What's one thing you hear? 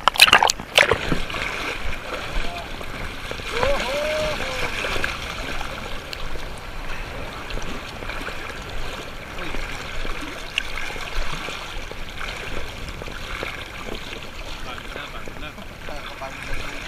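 Paddles splash in the water as a kayak moves.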